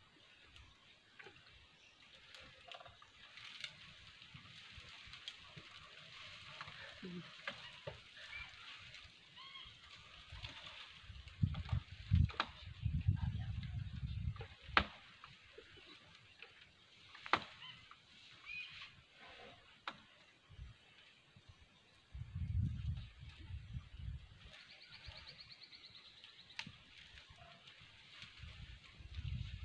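Leafy branches rustle and shake as an elephant pulls at them.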